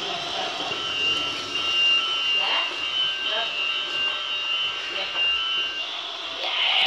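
A toy train's small electric motor whirs as the train rolls along plastic track.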